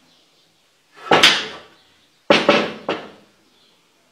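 A wooden board knocks and scrapes against a table.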